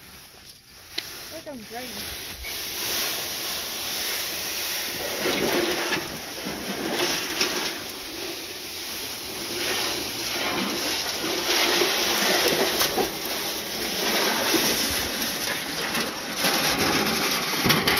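A metal tub scrapes and rattles as it is dragged over grass and dirt.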